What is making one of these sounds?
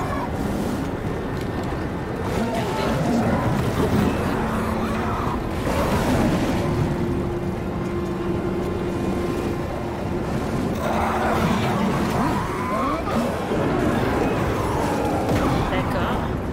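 A monster snarls and growls.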